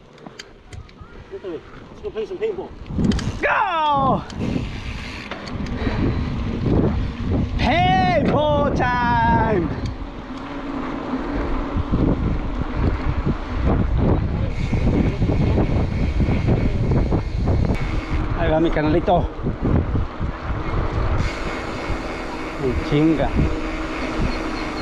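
Bicycle tyres roll and rattle over rough, cracked pavement.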